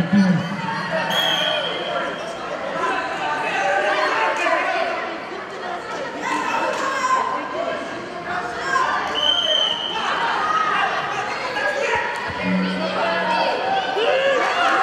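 A crowd of spectators talks and shouts throughout in an echoing hall.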